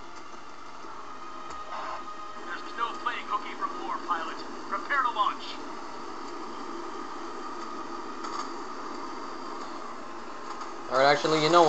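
A spacecraft engine hums steadily.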